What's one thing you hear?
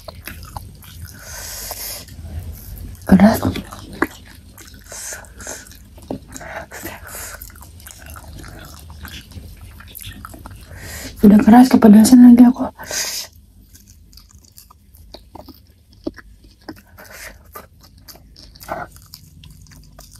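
A young woman chews fried cassava close to a microphone.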